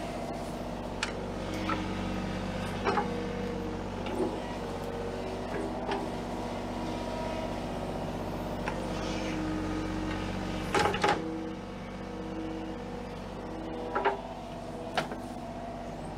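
An excavator bucket scrapes and knocks into dirt.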